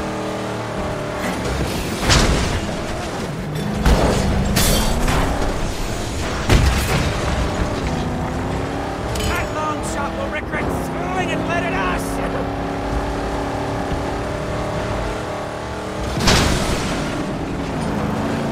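A car engine roars and revs steadily.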